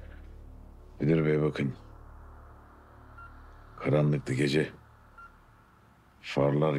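An older man speaks in a low, weary voice.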